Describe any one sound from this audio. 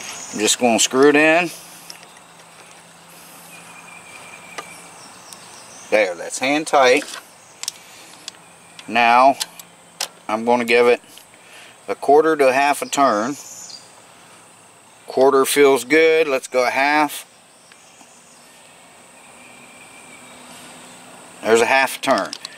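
A ratchet wrench clicks as it turns against metal.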